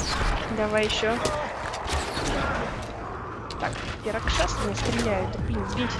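A beast snarls and shrieks.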